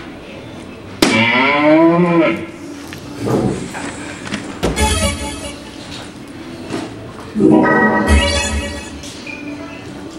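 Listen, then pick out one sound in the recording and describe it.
An electronic dartboard plays loud sound effects.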